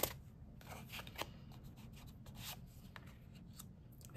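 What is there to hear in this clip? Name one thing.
A card is placed down on a table with a soft tap.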